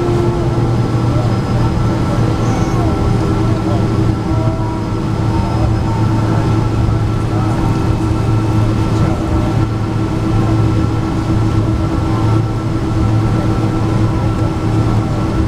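Jet engines hum steadily as an airliner taxis, heard from inside the cabin.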